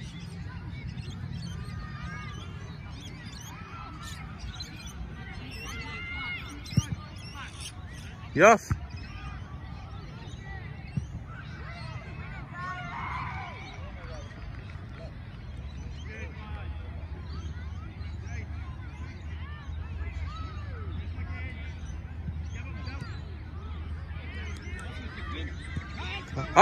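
Young players shout and call out across an open field, far off.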